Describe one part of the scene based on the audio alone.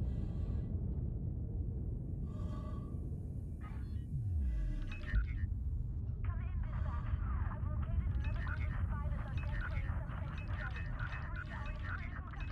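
A spaceship's engine hums low and steady.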